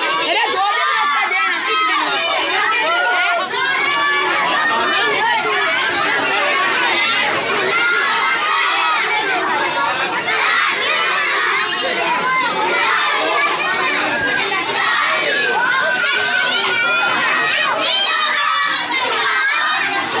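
A crowd of boys and men chant and chatter together nearby, outdoors.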